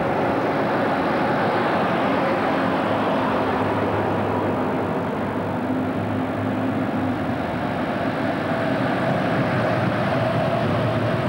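Truck tyres roll on asphalt.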